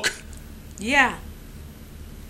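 A man makes a short, sliding vocal sound close by.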